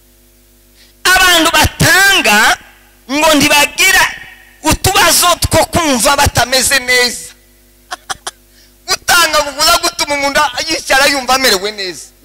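A man preaches loudly and with animation through a microphone and loudspeakers.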